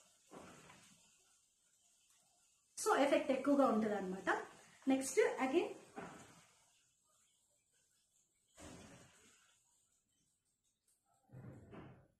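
A young woman speaks calmly and close by, in short bursts.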